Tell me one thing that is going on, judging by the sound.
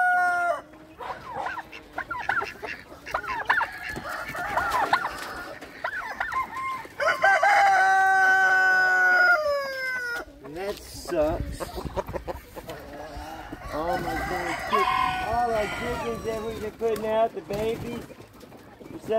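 Small birds chirp and call loudly close by.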